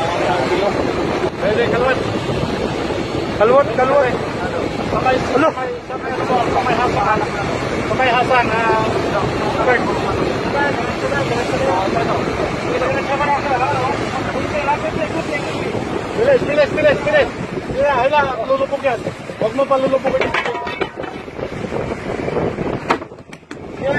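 Water rushes and churns behind a speeding boat.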